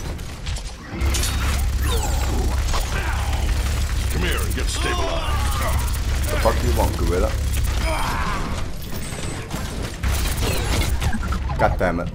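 Rapid gunfire rattles heavily.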